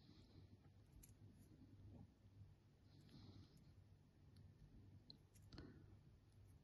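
A metal clasp clicks faintly.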